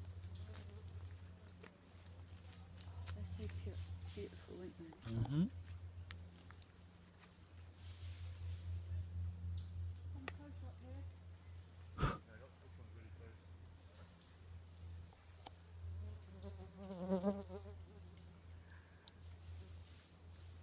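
A monkey rustles through dry leaves.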